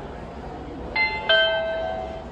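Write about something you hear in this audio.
An elevator chime rings out.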